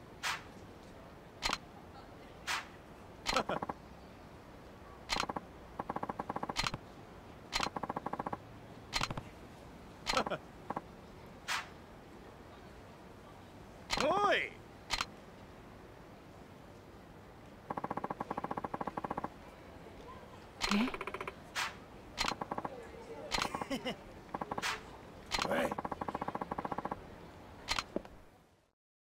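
Short electronic blips sound over and over.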